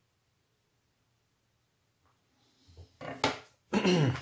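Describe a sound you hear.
A metal plate is set down on a wooden table with a light knock.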